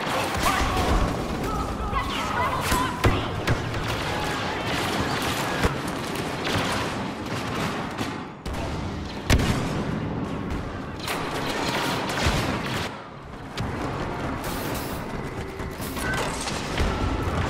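Blasters fire in rapid bursts.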